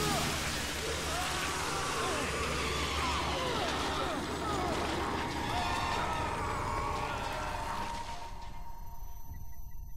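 Flesh squelches and tears in a violent struggle.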